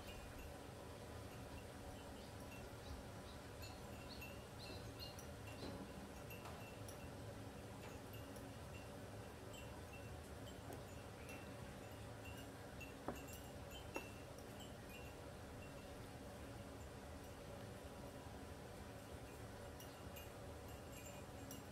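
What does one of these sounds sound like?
A woman sips a hot drink from a mug.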